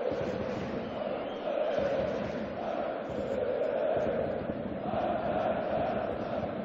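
A stadium crowd cheers and chants steadily, heard across a wide open space.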